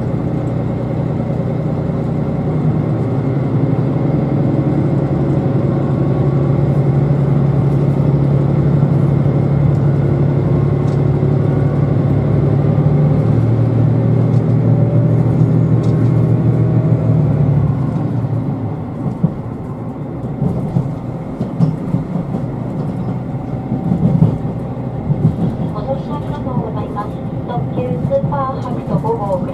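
A train hums and rumbles steadily as it rolls along.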